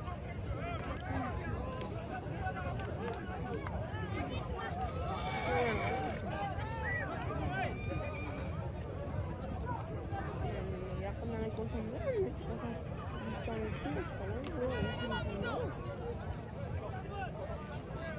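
A large crowd of men shouts and calls out outdoors.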